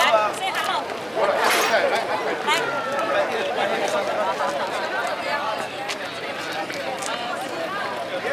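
A crowd of men and women chatters and calls out outdoors.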